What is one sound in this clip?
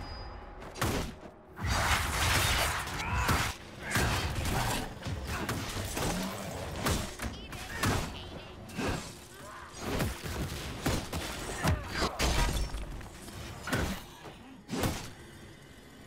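Weapons clash and strike a large creature in quick bursts.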